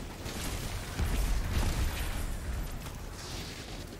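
Explosions thud loudly.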